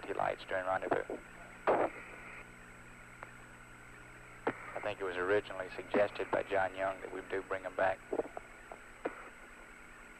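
A man speaks over a crackly radio link.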